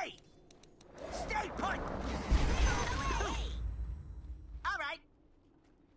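Magic spells crackle and blows clash in a game battle.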